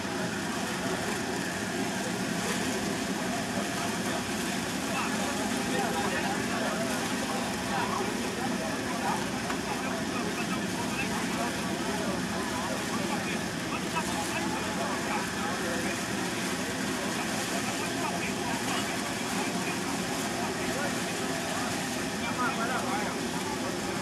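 Wind blows steadily across the microphone.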